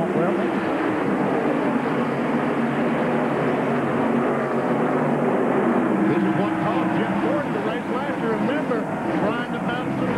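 Race cars whoosh past close by.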